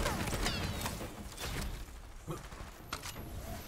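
Metallic clanks and whirs sound as a weapon is handled.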